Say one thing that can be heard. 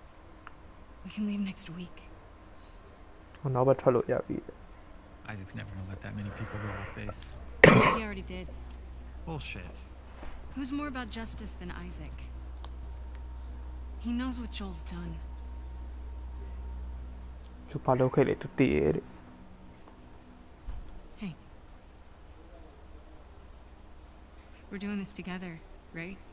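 A young woman answers quietly, close by.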